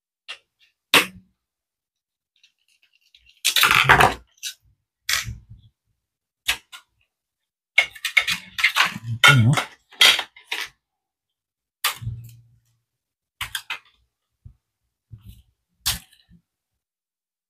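Small metal parts click and clatter as they are handled on a table.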